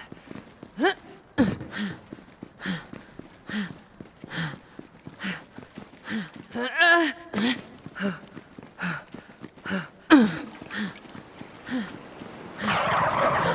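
Footsteps thud steadily at a walking pace.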